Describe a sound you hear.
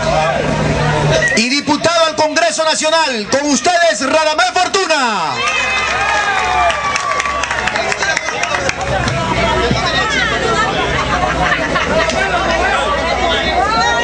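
A crowd of men chatter and murmur nearby.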